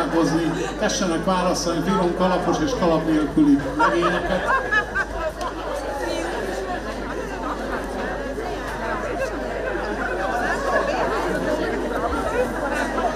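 A folk band plays lively music through loudspeakers in a large hall.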